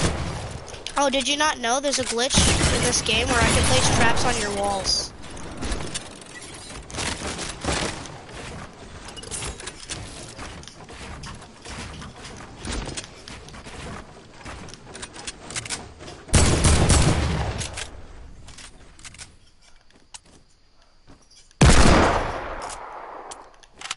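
Wooden walls clatter and thud as they are built in quick succession.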